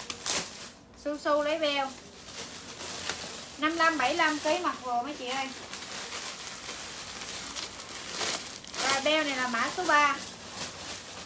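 A young woman talks brightly close by.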